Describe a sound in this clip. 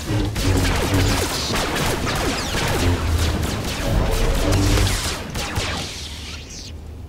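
Lightsabers hum and clash in a fierce fight.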